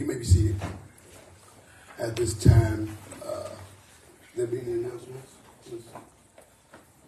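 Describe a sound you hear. A man preaches forcefully into a microphone in an echoing room, in short bursts with pauses.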